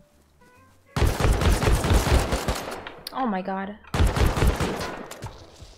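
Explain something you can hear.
A gun fires rapid bursts of loud shots.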